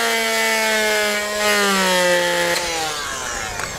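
A power drill whirs and winds down.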